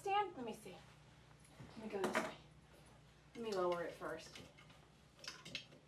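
A woman talks in short, lively bursts close by.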